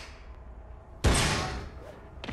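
A man lands heavily on a metal grating with a thud.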